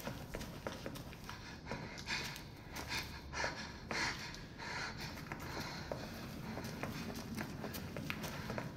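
Footsteps scuff across a gritty floor.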